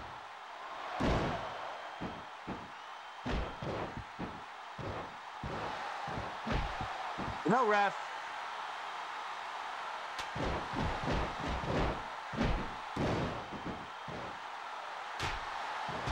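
Body blows thud in a wrestling video game.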